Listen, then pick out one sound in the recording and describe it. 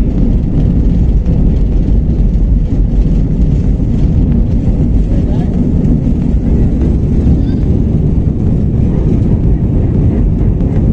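Jet engines roar loudly and steadily as an airliner speeds along the runway.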